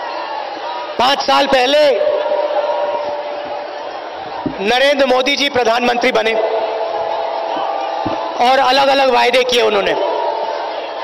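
A man gives a speech loudly through a microphone and loudspeakers, his words echoing outdoors.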